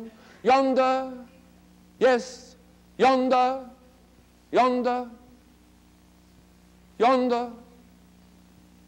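An elderly man recites loudly in drawn-out, sing-song phrases in an echoing room.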